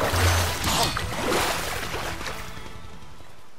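Water splashes loudly as a fish thrashes at the surface.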